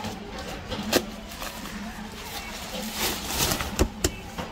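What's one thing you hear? Umbrella parts click as they are handled.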